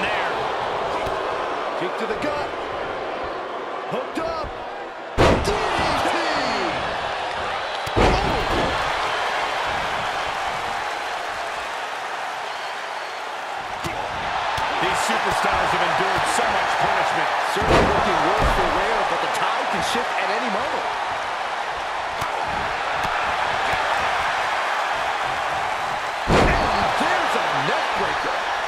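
A large crowd cheers and roars steadily.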